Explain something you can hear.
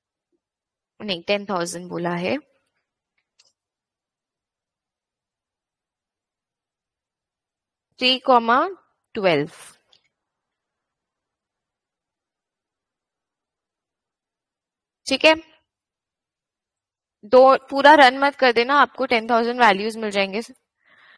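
A woman speaks calmly into a microphone in short bursts with pauses.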